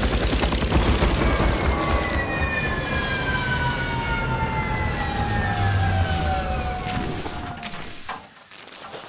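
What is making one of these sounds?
A helicopter's engine whines down, falling in pitch.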